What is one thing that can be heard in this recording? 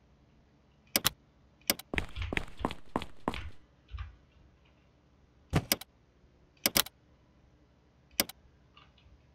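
Short clicks sound as game menus open.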